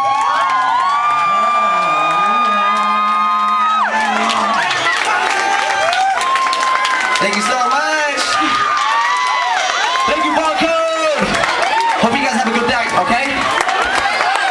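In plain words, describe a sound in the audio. A young man raps loudly into a microphone, heard through loudspeakers.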